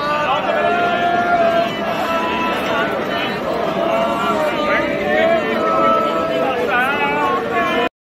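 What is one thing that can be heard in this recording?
A crowd of men chant together loudly outdoors.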